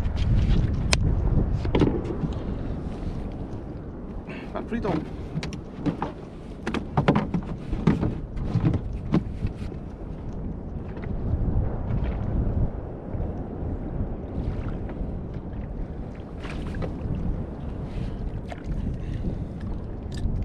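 Wind blows and rumbles across the microphone outdoors.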